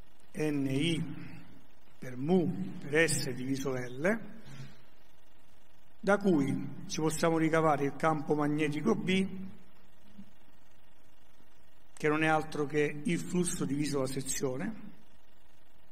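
A man lectures calmly through a microphone in an echoing hall.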